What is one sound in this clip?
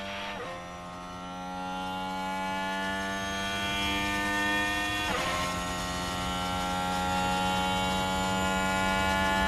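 A racing car engine screams at high revs, its pitch climbing steadily.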